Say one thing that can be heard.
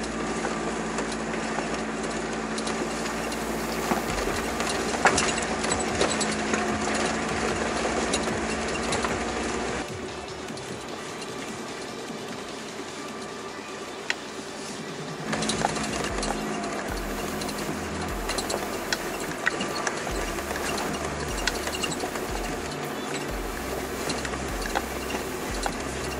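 Tyres crunch and rumble over loose stones.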